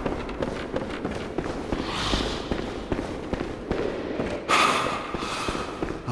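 Heavy armoured footsteps clank on stone.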